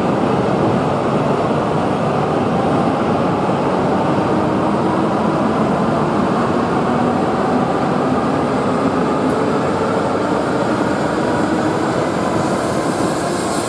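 A high-speed train pulls away with a rising electric whine.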